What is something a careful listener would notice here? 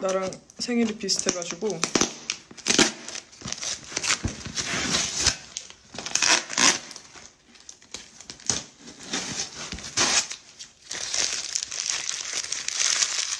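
A wrapper crinkles and rustles in someone's hands.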